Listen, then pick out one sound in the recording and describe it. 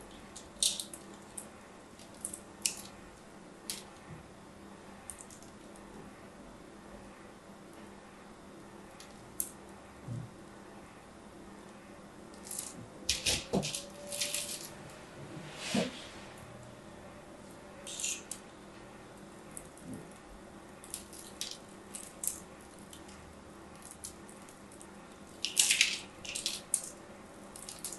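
A blade scrapes and crunches through a bar of soap in short bursts.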